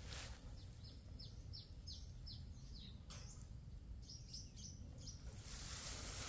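A small bird chirps rapidly.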